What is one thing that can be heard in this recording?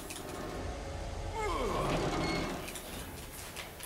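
A metal valve wheel creaks as it turns.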